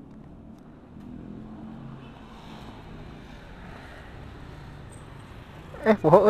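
Motorbikes drive past on a nearby street.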